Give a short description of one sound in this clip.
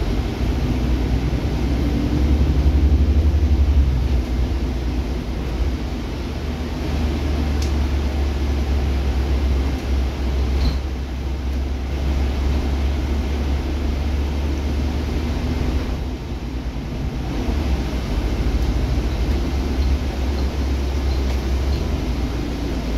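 Tyres hiss on a wet road beneath a moving city bus.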